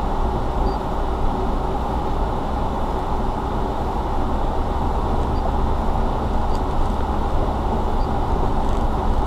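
Tyres crunch and rumble over gravel.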